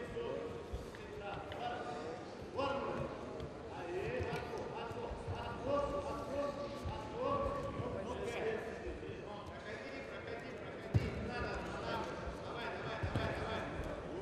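Several men shout instructions loudly in a large echoing hall.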